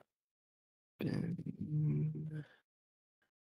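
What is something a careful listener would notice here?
A man hums thoughtfully into a close microphone.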